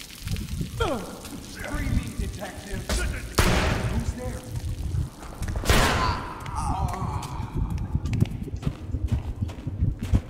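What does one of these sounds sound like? Heavy footsteps run across hard ground.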